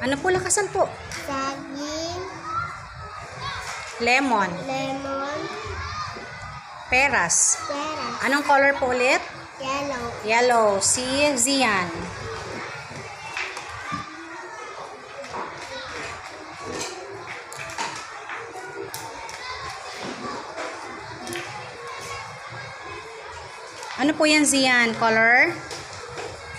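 A young girl talks brightly nearby.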